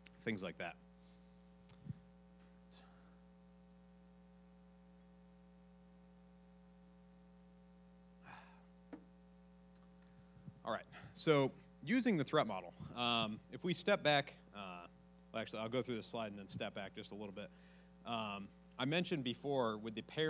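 A man speaks into a microphone, pausing now and then.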